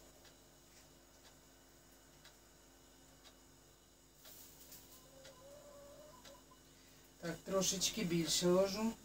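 A metal spoon clinks and scrapes in a bucket.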